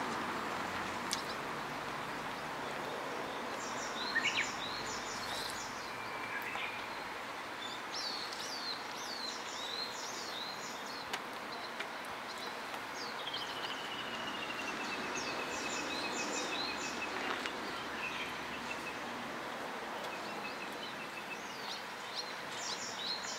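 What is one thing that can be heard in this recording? A fire crackles softly outdoors.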